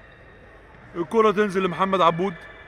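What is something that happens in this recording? A man shouts across an echoing indoor court.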